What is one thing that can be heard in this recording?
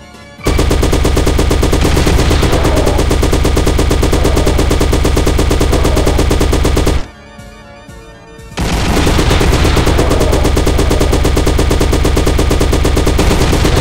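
A rapid-fire gun shoots in fast, steady bursts.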